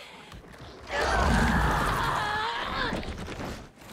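A monster snarls and roars loudly.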